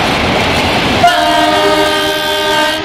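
A train horn sounds with a long blast.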